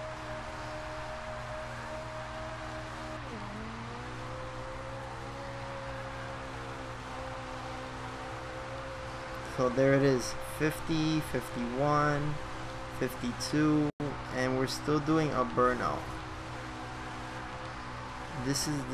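A sports car engine roars steadily and drops in pitch at a gear change.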